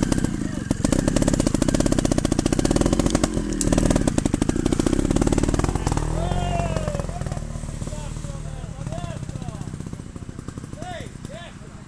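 A motorcycle engine runs loudly close by, then fades into the distance.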